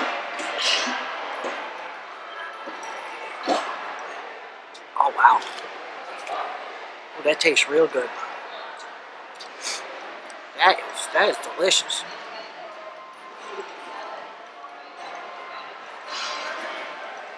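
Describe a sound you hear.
An older man sips and slurps a drink.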